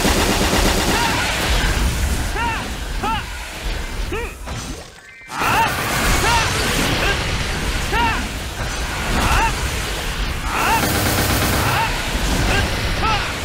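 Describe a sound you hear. Game attack effects burst and crash in rapid succession.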